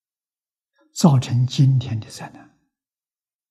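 An elderly man speaks calmly, as if giving a lecture.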